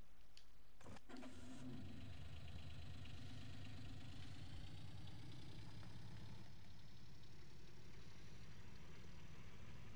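A small utility vehicle's engine starts and revs up steadily as it drives off.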